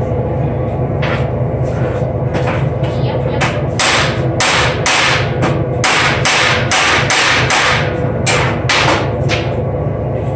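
A hammer strikes metal repeatedly with sharp ringing blows.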